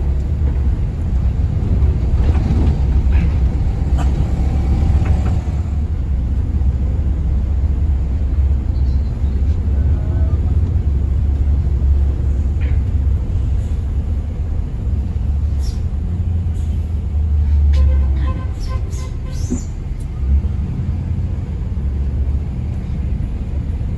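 A bus engine rumbles steadily from inside the cabin.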